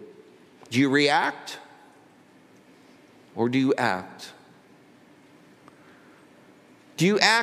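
An elderly man speaks calmly through a microphone in short phrases with pauses.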